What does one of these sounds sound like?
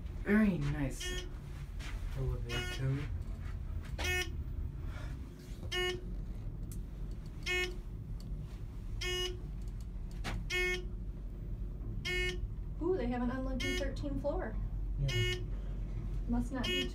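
An elevator chime dings briefly as each floor passes.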